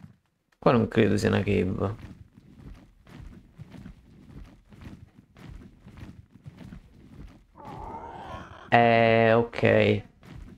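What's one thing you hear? Large wings flap in a steady rhythm.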